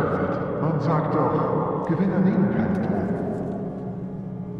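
A young man talks loudly close by.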